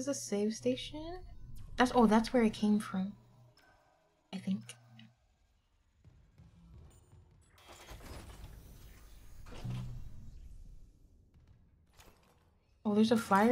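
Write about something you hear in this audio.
A young woman talks with animation through a close microphone.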